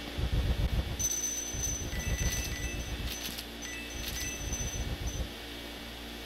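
Coins spill and jingle.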